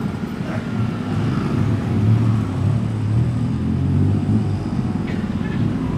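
Motorbikes buzz past close by.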